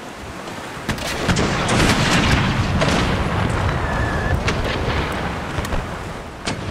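A cannon fires with a heavy booming roar.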